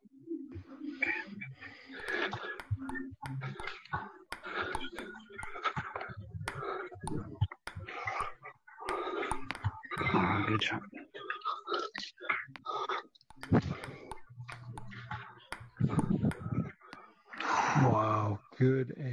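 A ping-pong ball clicks sharply against a table and paddles in quick rallies.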